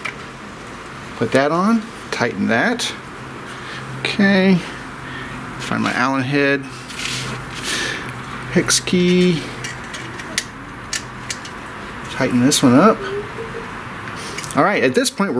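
Small plastic and metal parts click and tap as fingers adjust a tool.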